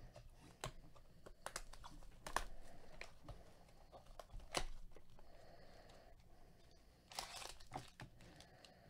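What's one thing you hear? Cellophane wrapping crinkles as a box is opened.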